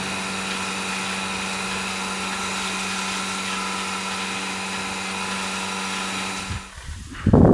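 Water sprays steadily from a hose.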